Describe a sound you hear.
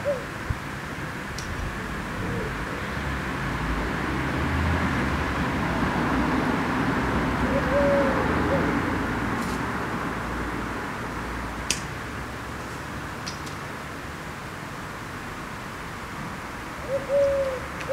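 Wind blows steadily outdoors, swelling and easing.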